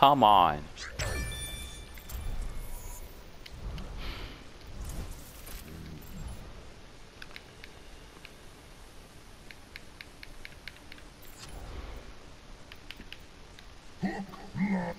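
Soft menu clicks and blips sound as options are selected.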